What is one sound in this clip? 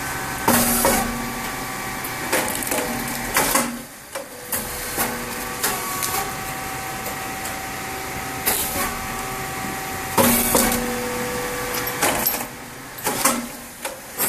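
Puffed crisps clatter onto a metal chute.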